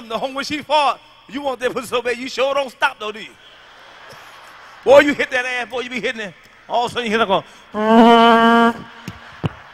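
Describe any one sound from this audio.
A man speaks animatedly into a microphone, his voice loud and expressive.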